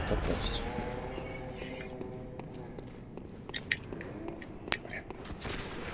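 Footsteps tap on a stone walkway.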